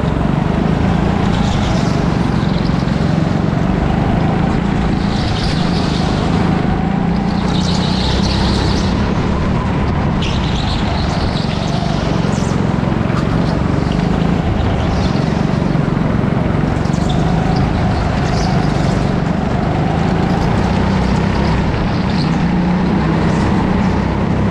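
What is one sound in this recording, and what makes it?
Kart tyres squeal on the smooth floor in the turns.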